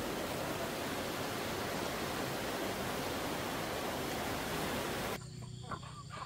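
Water rushes and churns steadily.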